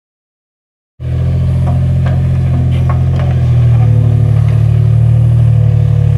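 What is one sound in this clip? An excavator engine rumbles steadily nearby, outdoors.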